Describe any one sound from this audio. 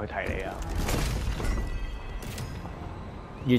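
A treasure chest bursts open with a bright shimmering chime.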